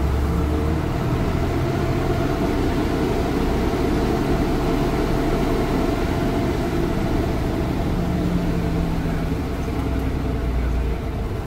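A bus engine rumbles steadily as the bus drives along.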